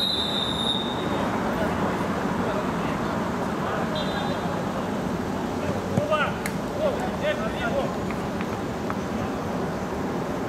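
A crowd of spectators murmurs steadily nearby.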